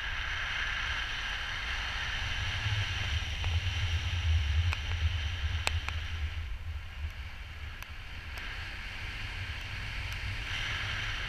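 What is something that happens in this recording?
Wind rushes and buffets loudly.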